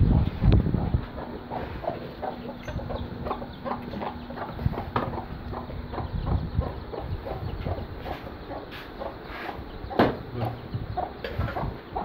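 Chicks cheep and peep in quick high bursts.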